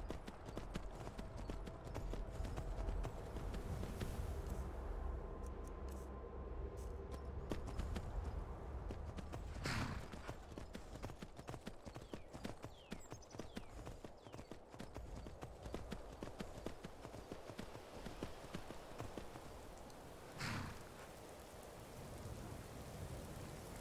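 Horse hooves clop quickly on a stone path.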